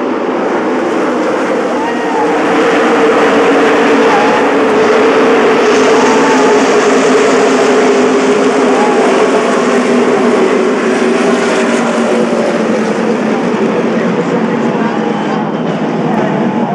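Race car engines roar loudly around a track.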